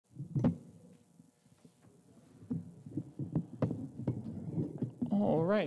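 A double bass knocks and thumps as it is moved.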